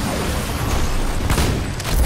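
An electric beam crackles and buzzes.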